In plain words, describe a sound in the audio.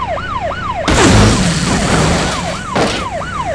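A heavy boulder crashes down onto a metal tanker with a loud crunch.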